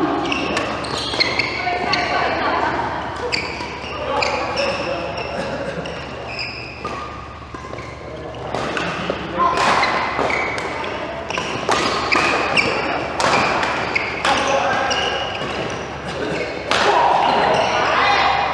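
Shoes squeak on the floor.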